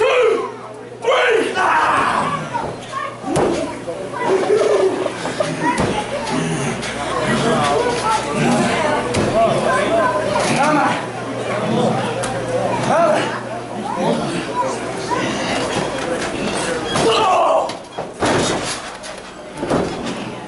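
A body thuds onto a wrestling mat.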